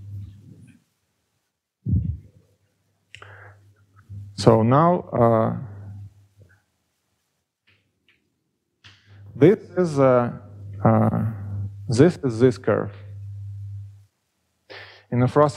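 A young man lectures calmly through a headset microphone.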